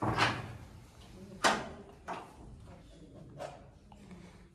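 Sharp knocks and thuds sound close by.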